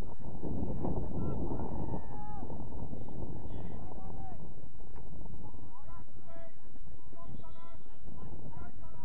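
Players call out to each other in the distance.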